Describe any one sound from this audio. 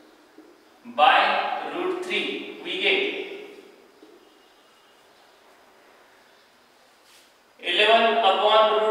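A man explains calmly into a close microphone.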